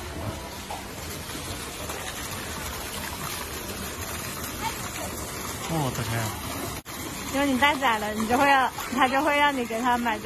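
A fountain splashes into a pond.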